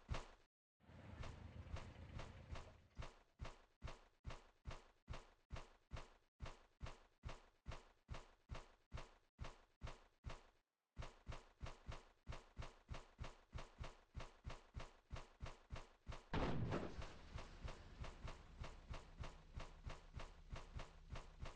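Footsteps thud quickly and evenly on grass.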